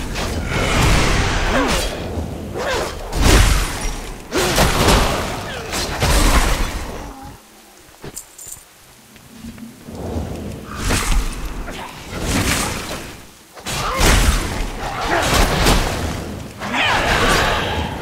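Magic spells crackle and strike in a fight.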